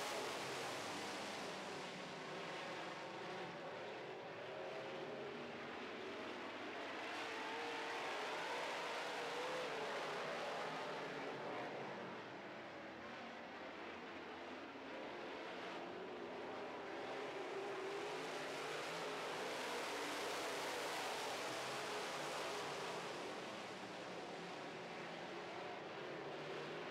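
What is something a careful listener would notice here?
Race car engines roar loudly as they speed around a dirt track.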